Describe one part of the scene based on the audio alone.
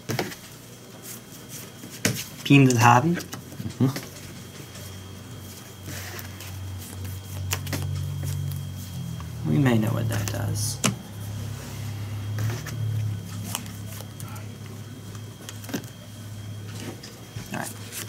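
Playing cards riffle and rustle as they are shuffled in the hands.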